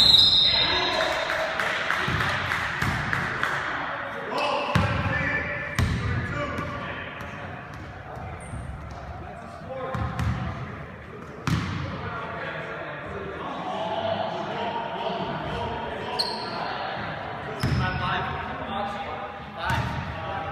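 Sneakers squeak on a gym floor.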